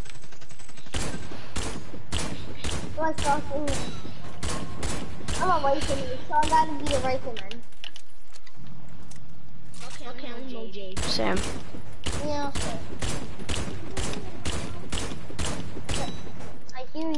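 Rifle shots ring out in quick succession.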